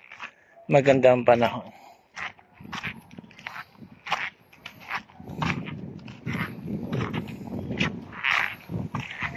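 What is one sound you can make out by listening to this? Footsteps crunch on a dirt and gravel path.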